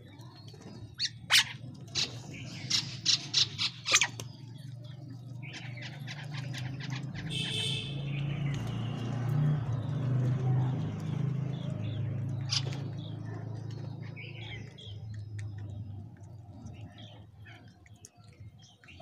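Birds peck sharply at grain on a hard floor.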